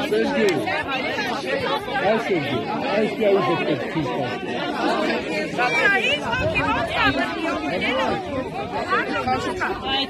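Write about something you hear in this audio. A crowd of young men shouts and cheers loudly outdoors.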